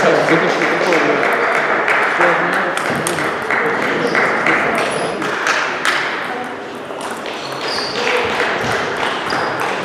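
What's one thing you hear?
A ball clicks back and forth between paddles and a table in a quick rally.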